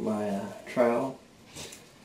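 A paddle stirs thick mortar in a bucket.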